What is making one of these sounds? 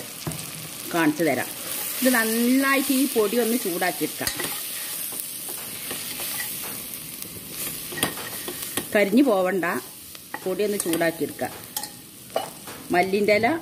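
A metal spoon scrapes and stirs food in a metal pot.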